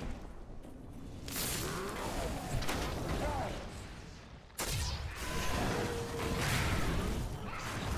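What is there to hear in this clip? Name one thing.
Fiery blasts burst and roar.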